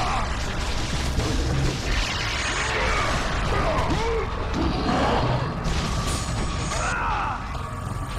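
A man grunts and yells while fighting.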